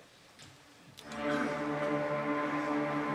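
An orchestra plays a sustained swelling chord.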